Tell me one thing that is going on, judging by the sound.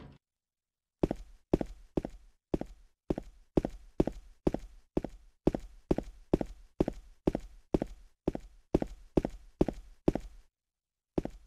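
Footsteps tread steadily up stairs.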